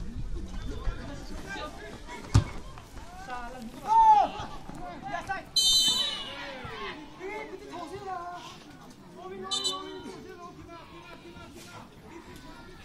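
A crowd of young men and women shouts and cheers outdoors.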